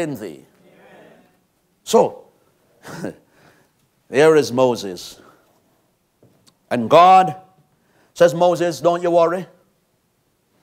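A man speaks with animation in a room with some echo, pausing between phrases.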